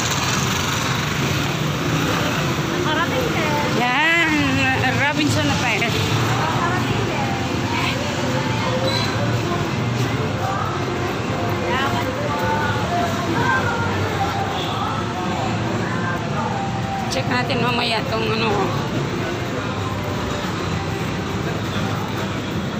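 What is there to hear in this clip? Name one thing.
Footsteps walk steadily on a hard pavement.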